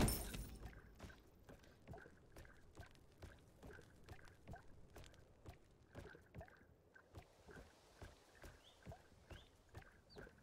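A game character's footsteps patter quickly and evenly.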